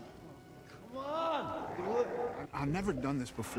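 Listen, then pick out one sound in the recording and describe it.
A man shouts urgently nearby.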